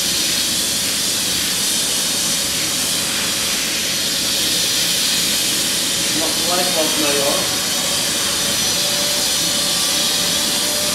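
A spray gun hisses steadily as it sprays.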